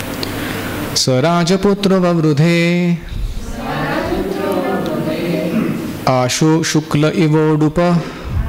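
A man recites in a slow, chanting voice through a microphone.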